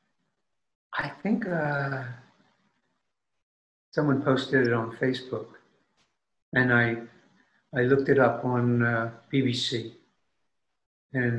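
An older man talks calmly through an online call, in short phrases with pauses.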